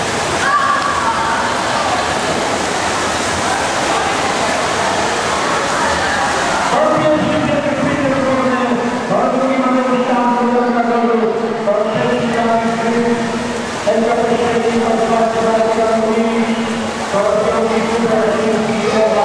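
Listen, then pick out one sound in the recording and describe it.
Swimmers splash through the water with freestyle strokes in an echoing indoor pool.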